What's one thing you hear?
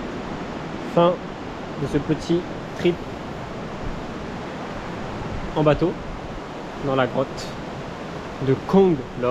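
A young man speaks casually close by.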